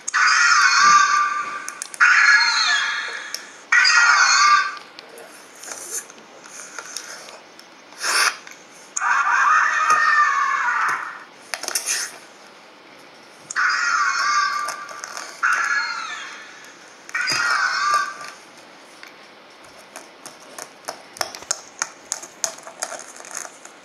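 Plastic toy figures knock and rub together in someone's hands.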